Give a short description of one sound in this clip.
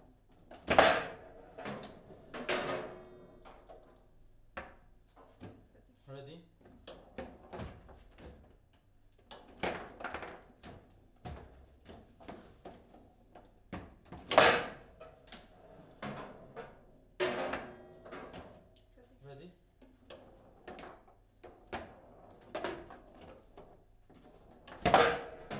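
A ball cracks sharply against the plastic players and walls of a foosball table.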